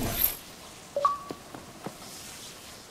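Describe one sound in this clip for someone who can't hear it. Footsteps run across the ground.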